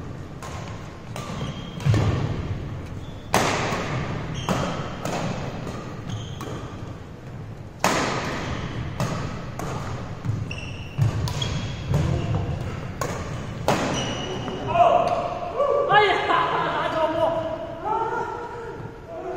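Badminton rackets strike a shuttlecock again and again in a large echoing hall.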